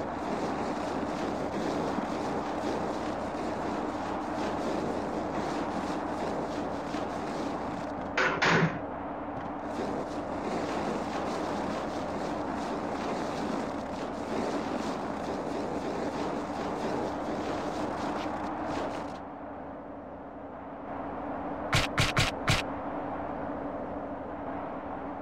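Footsteps run across wet ground.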